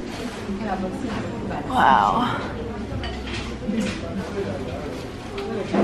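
A crowd of people chatters nearby in an echoing courtyard.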